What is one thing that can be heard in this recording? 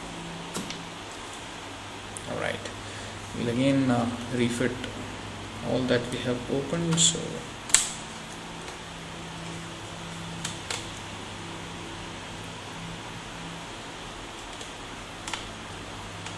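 Small plastic parts click and knock.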